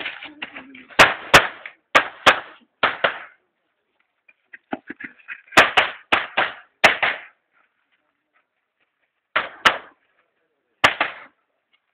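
Pistol shots crack in quick bursts, echoing outdoors.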